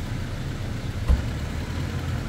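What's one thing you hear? A car door slams shut nearby.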